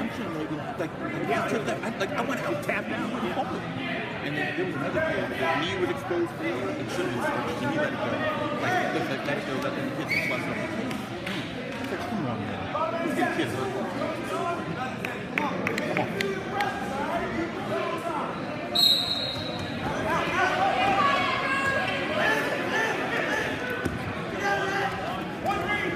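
Several men and women talk and call out nearby in an echoing hall.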